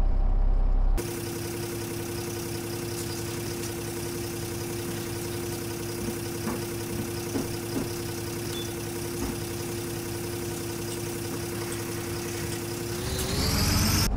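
A bus engine hums steadily, heard from outside.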